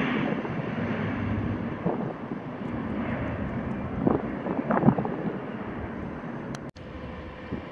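A turboprop plane roars loudly as it climbs away overhead.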